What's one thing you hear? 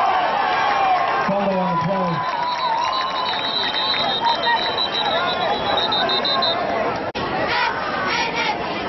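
A crowd cheers and shouts in the stands outdoors.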